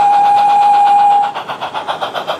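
A model steam locomotive's whistle blows a steady, shrill note.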